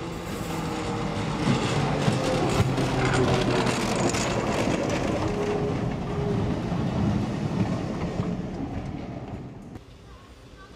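Tram wheels clatter and squeal on the rails.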